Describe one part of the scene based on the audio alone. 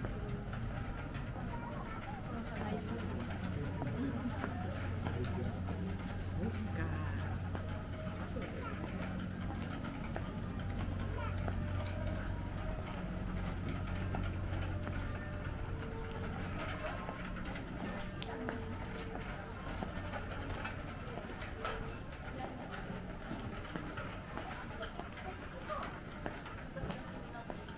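Footsteps of people walking scuff on pavement nearby.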